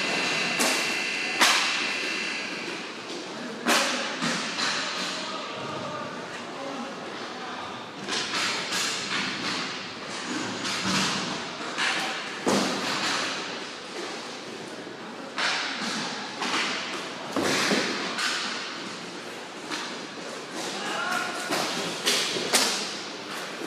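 Hockey sticks clack sharply against a ball and the floor.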